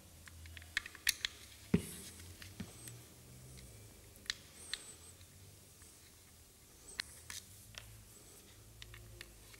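Small plastic parts click and tap close by.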